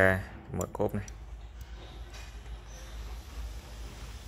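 A small plastic trunk lid clicks as a finger lifts it open.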